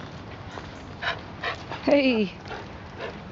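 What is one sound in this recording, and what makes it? A dog yelps and whines close by.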